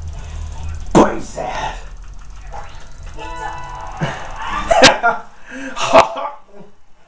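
Punches land with sharp thuds through a television speaker.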